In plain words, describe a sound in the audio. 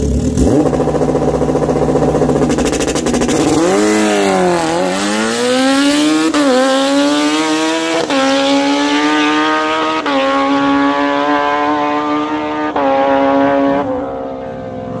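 A motorcycle engine roars loudly and accelerates hard, rising in pitch through quick gear shifts before fading into the distance.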